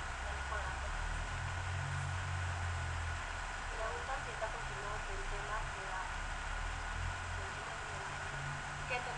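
A young woman talks calmly, heard through a computer microphone.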